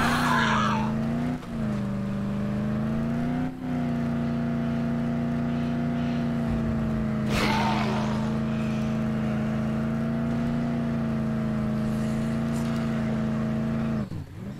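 A car engine hums steadily, rising and falling slightly in pitch.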